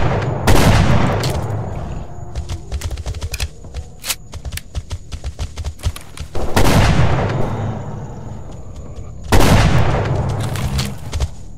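A shotgun fires loudly, with a booming echo.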